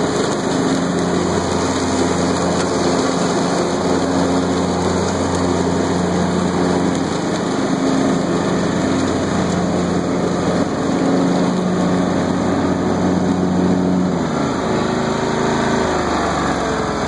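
A riding lawn mower engine drones steadily, then winds down.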